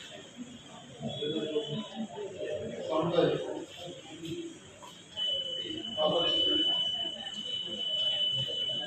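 People talk nearby in a room.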